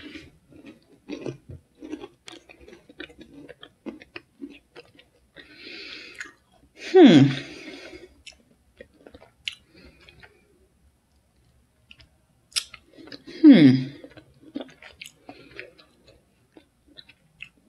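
A wrapper crinkles in a young woman's hands.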